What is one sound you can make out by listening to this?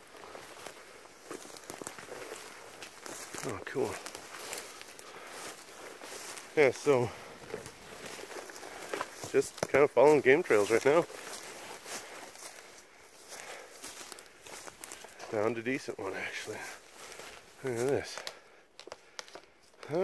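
Footsteps crunch through dry brush.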